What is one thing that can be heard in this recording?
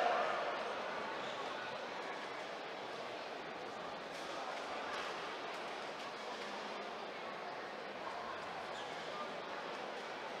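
A large crowd murmurs and chatters steadily in an echoing arena.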